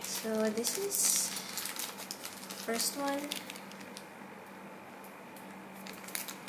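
Plastic wrapping crinkles in a hand.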